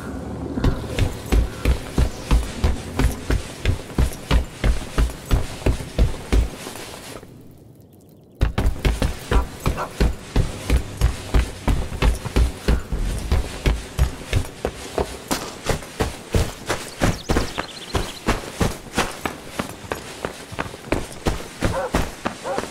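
Footsteps thud steadily.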